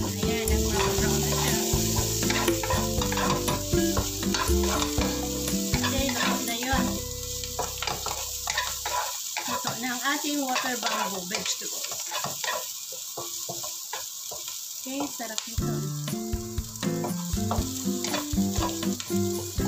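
A wooden spatula scrapes and stirs in a frying pan.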